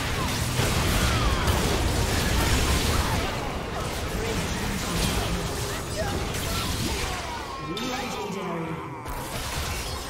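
Spell effects blast and crackle in a video game fight.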